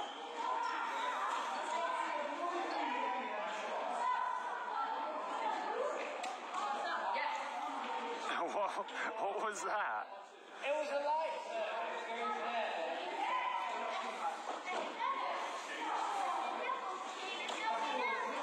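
Badminton rackets strike a shuttlecock with light pops.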